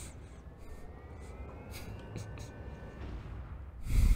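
A mechanical whir rises in pitch.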